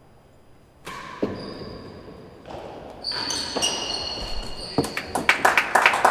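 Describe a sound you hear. A ball bounces off walls and a hard floor.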